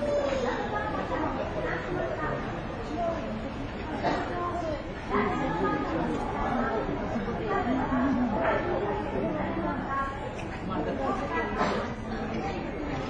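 Panda cubs scuffle and tumble on a hard, wet floor.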